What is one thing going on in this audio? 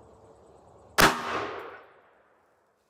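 A revolver fires a single loud shot outdoors.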